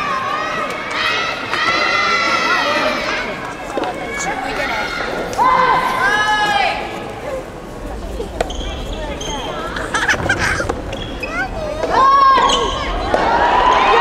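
A crowd of spectators shouts cheers in a large echoing hall.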